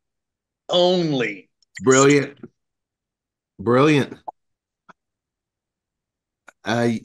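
Men talk and laugh with animation over an online call.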